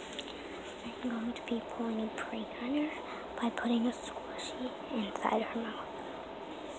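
A young girl whispers softly close by.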